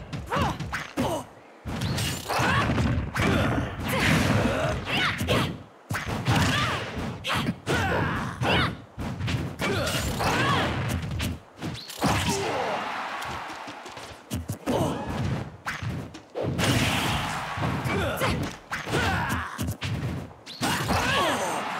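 Video game fighters trade punches and sword strikes with sharp hit sounds.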